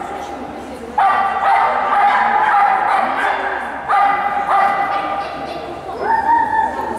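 People call out in the distance in a large echoing hall.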